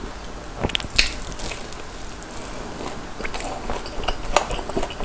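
A young man chews food loudly and wetly close to a microphone.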